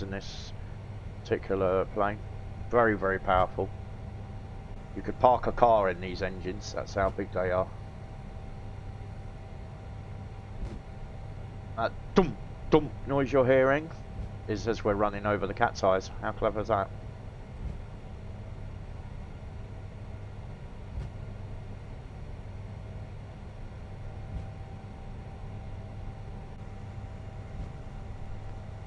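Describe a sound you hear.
A jet engine hums low and steady.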